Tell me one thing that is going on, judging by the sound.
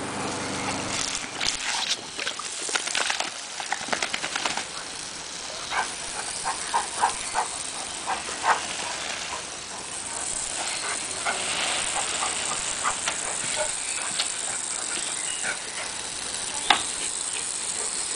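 Water sprays and splashes from a hose onto the ground.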